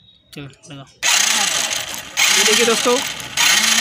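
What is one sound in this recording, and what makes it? An engine's starter cranks noisily in loud bursts.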